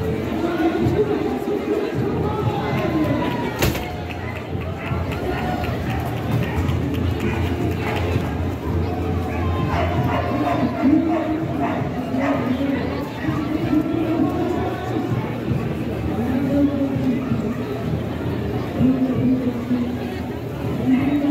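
A crowd of men and women chatters and calls out nearby, outdoors in a busy street.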